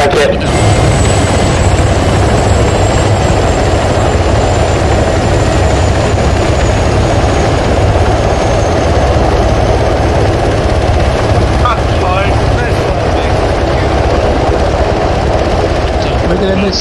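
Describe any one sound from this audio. Helicopter rotors thump loudly and steadily close by.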